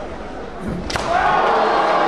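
A bamboo sword cracks sharply against a helmet.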